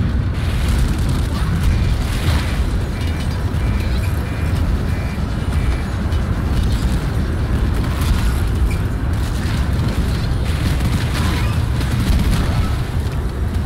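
Metal debris clatters and crashes.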